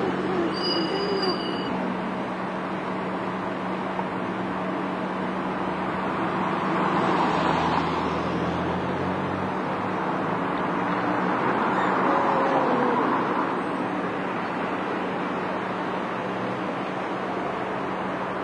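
A bus engine idles and rumbles nearby.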